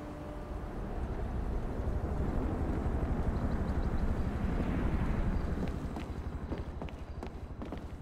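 A helicopter's rotor thuds overhead and fades away.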